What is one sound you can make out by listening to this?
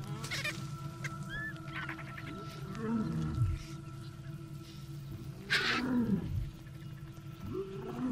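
Hyenas whoop and call nearby.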